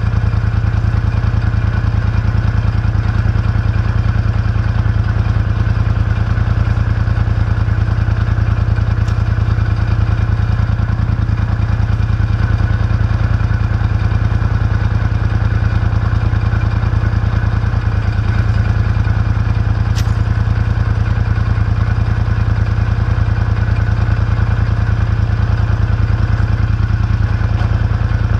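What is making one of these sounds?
A tractor engine idles steadily with a low, rapid throb close by.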